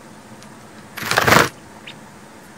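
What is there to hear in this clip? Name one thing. A small bird flutters its wings in a short burst.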